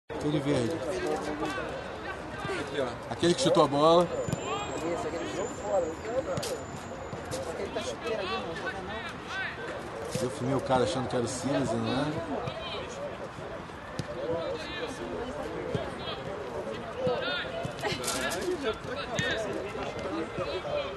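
A football is kicked on grass.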